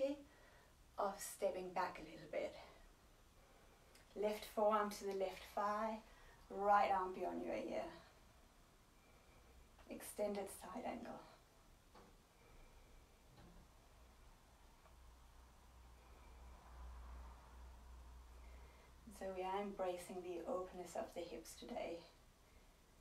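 A woman speaks calmly and clearly, close by, with long pauses.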